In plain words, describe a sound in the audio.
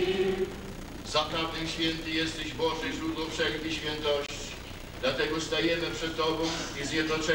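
A middle-aged man speaks calmly in a large echoing hall.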